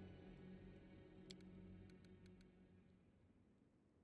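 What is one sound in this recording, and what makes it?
Soft game music plays and fades out.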